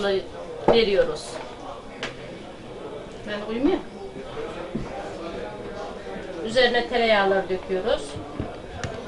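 An elderly woman talks nearby.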